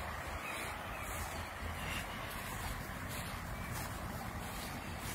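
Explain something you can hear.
Long grass rustles in the wind.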